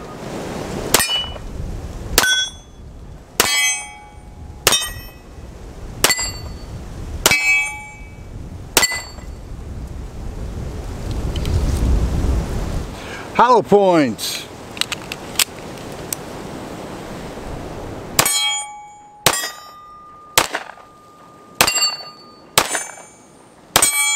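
Pistol shots crack sharply outdoors, one after another.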